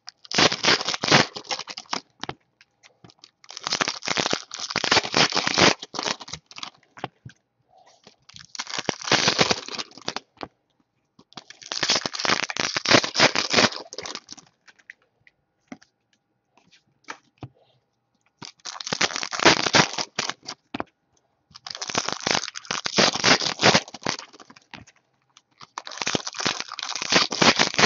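Foil wrappers crinkle and rustle close by in short bursts.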